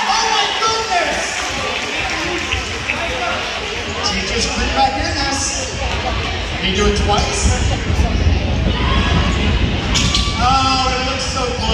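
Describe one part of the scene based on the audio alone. A crowd of spectators chatters in an echoing gym.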